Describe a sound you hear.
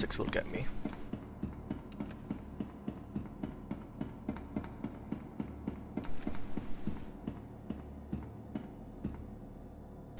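Footsteps tread briskly on a metal floor.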